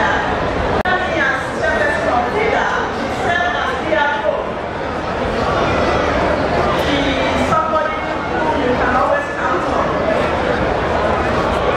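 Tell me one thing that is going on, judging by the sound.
A middle-aged woman speaks with animation into a microphone, heard through loudspeakers.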